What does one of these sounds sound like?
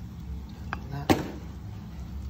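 A spoon taps against a metal bowl.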